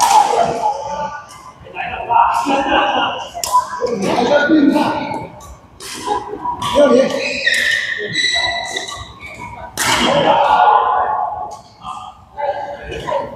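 Men talk and call out across an echoing hall.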